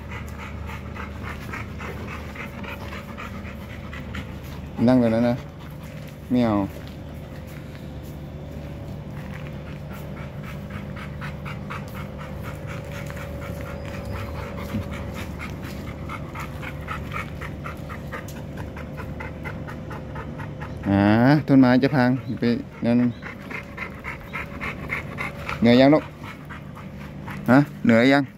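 A dog pants quickly and steadily.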